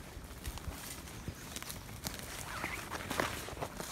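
A man's footsteps crunch through dry leaves and undergrowth.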